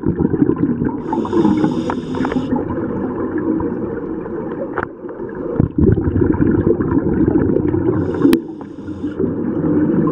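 A scuba diver breathes out, and bubbles gurgle and hiss underwater.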